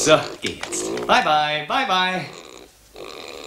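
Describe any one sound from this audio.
A pig squeals loudly.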